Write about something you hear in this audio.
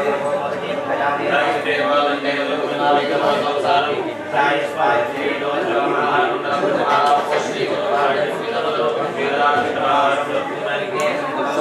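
Several men chant steadily together.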